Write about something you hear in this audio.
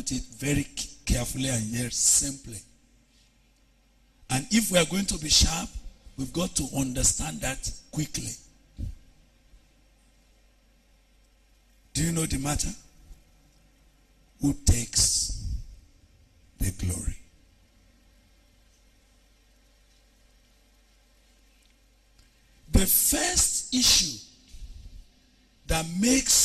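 A man preaches with animation into a microphone, in bursts with pauses, heard through loudspeakers in a hall.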